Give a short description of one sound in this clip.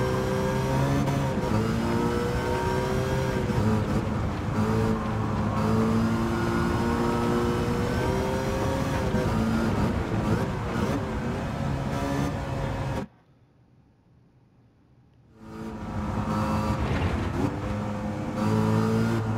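A car engine roars loudly, revving up and down through the gears.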